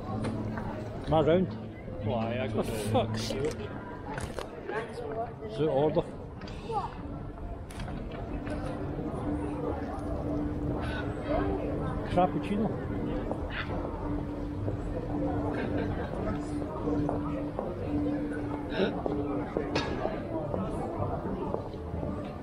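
Footsteps of passersby tap on paving stones.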